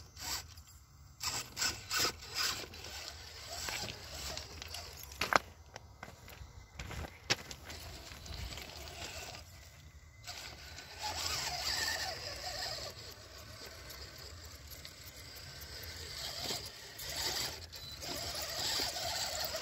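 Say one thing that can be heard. A small electric motor whines as a toy truck crawls over rocks.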